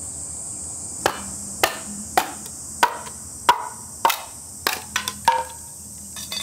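Sharp knocks strike a blade down into a bamboo stalk, again and again.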